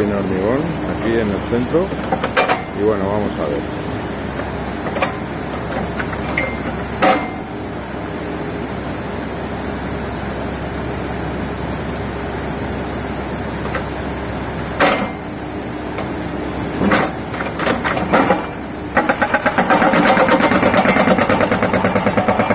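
Water rushes steadily over a weir.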